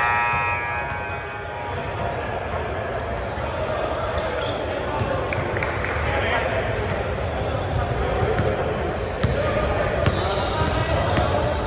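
A basketball bounces on a hard court floor.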